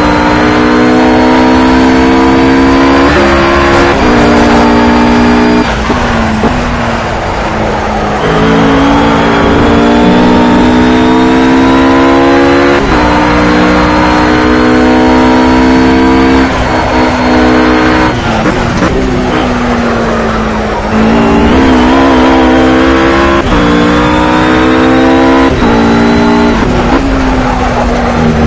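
A GT3 race car engine revs hard and shifts up through the gears.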